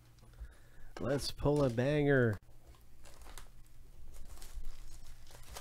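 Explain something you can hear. Plastic shrink wrap crinkles as it is torn off a box.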